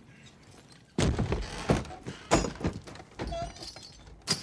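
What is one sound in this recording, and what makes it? Heavy thumps and knocks sound as someone climbs into a wooden carriage.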